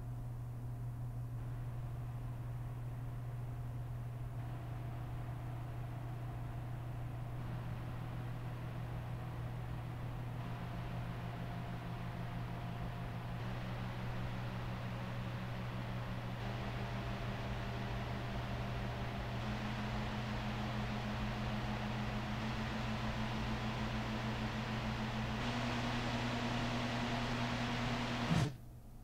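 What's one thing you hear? A computer cooling fan whirs steadily, rising in pitch and growing louder in steps.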